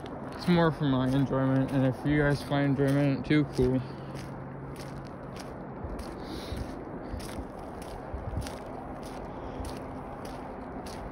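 Footsteps scuff on pavement outdoors.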